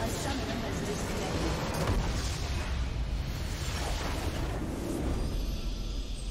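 A structure bursts apart in a loud, rumbling magical explosion.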